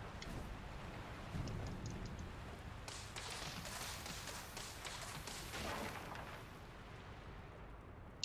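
Footsteps rustle through dry undergrowth.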